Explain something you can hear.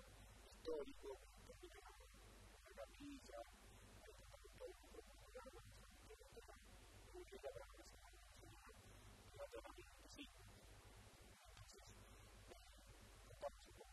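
A man speaks calmly into a microphone close by.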